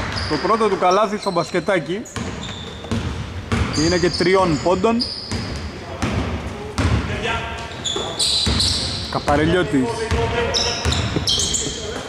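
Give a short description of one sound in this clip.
A basketball bounces on a wooden floor with dull thuds.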